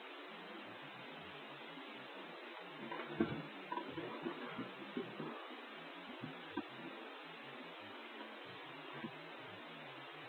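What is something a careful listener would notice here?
Hands tap and rub against a hard plastic box.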